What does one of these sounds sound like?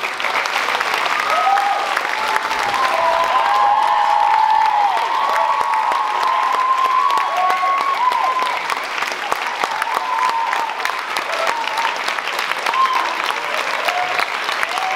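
An audience cheers and whoops loudly.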